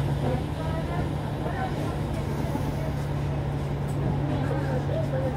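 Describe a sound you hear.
Cars drive past on the road.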